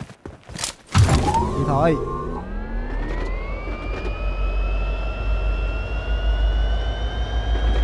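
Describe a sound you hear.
A car engine starts and revs up steadily as the car speeds away.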